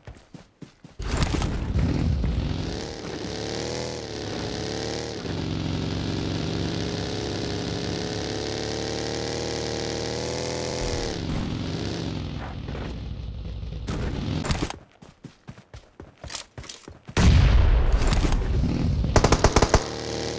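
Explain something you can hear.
A buggy engine revs and drones loudly.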